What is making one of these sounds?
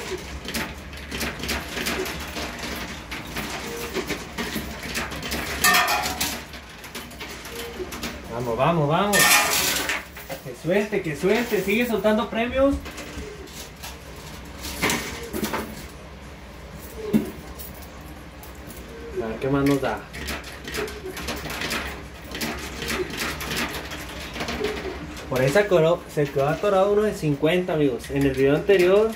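Coins clink and clatter as they drop into a coin pusher machine.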